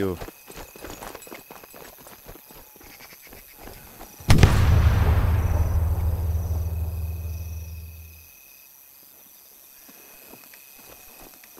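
Footsteps rustle through dry brush.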